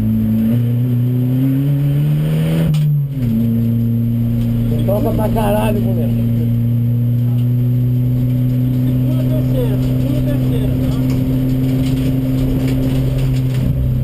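A race car engine roars loudly from inside the cabin, rising in pitch and then dropping as the gear changes.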